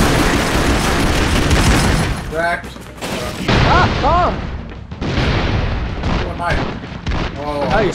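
Gunfire and explosions rattle loudly in a video game.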